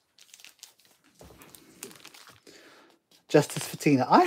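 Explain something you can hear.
A thin plastic sleeve crinkles and rustles as it is handled.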